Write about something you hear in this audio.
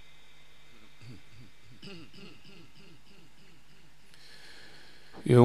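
An elderly man chants in a wavering, melodic voice through a microphone.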